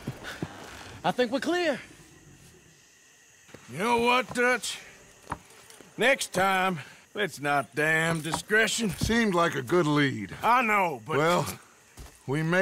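A man speaks calmly with a gravelly voice, close by.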